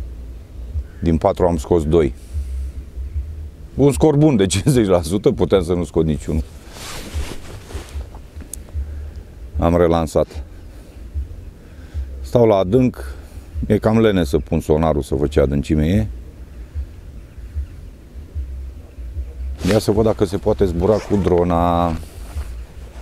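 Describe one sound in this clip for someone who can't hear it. A middle-aged man speaks calmly into a clip-on microphone, close by.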